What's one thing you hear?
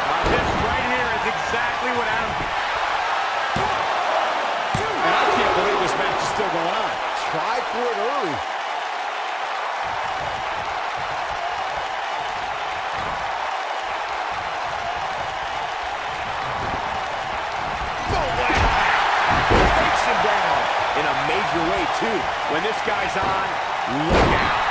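A large crowd cheers and murmurs throughout, echoing in a big arena.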